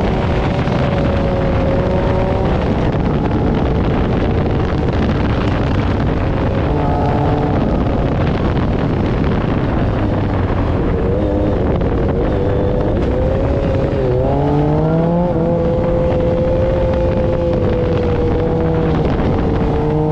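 An off-road buggy engine roars and revs, its pitch rising and falling.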